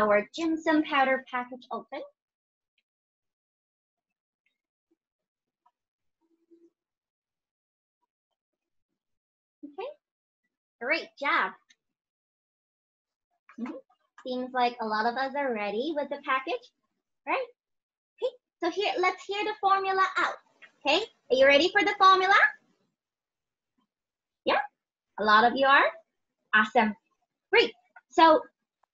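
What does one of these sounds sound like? A young woman speaks with animation over an online call, in bursts with pauses.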